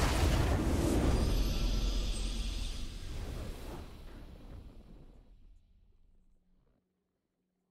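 A triumphant fanfare swells and slowly fades away.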